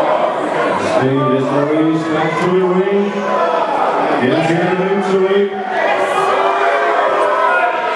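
A man's voice shouts close by over the crowd.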